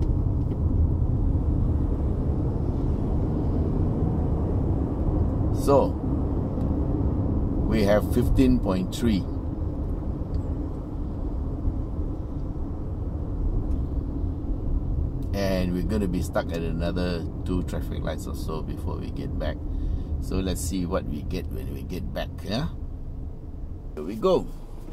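A car engine hums steadily with low road rumble inside the cabin.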